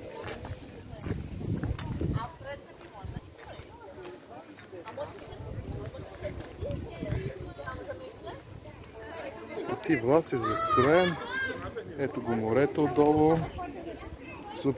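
Men and women chat and murmur nearby outdoors.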